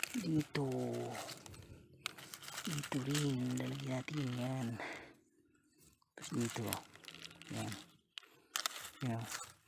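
Dry palm fronds rustle and crackle as a hand pushes them aside.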